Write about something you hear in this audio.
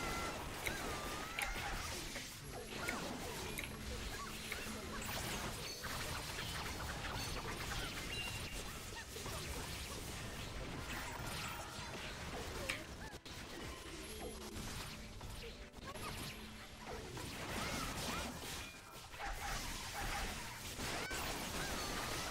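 Spells and weapons crash and crackle in a busy fight.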